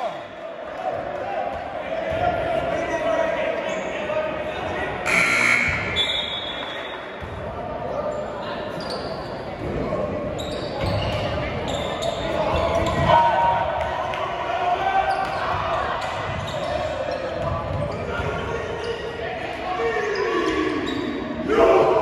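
A small crowd murmurs and calls out in a large echoing gym.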